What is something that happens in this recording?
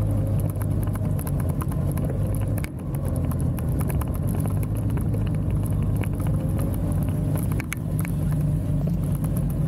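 Wind buffets against a microphone outdoors.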